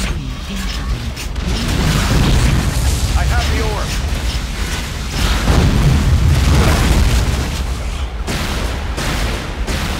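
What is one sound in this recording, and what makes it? Energy weapons fire in sharp zapping bursts.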